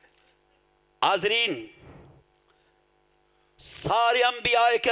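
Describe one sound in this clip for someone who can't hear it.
A man speaks forcefully into a microphone, heard through a loudspeaker with echo.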